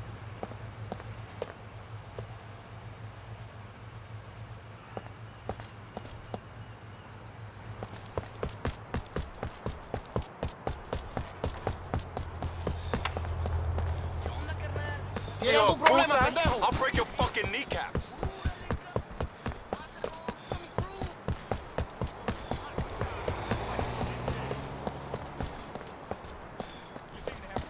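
Footsteps walk and then run quickly on pavement.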